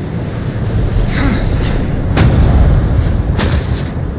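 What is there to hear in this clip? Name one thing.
A heavy stone platform grinds and rumbles as it moves.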